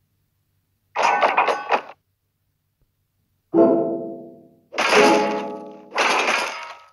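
Game battle effects whoosh and clash in loud bursts.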